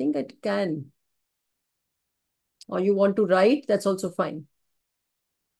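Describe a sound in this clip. A woman speaks through an online call.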